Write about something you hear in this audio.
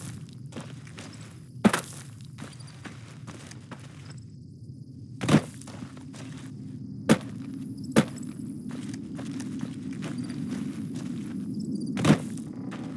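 Footsteps crunch steadily over dry gravel and rock.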